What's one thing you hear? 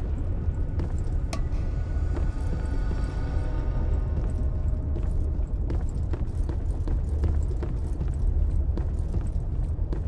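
Footsteps thud steadily on wooden floorboards.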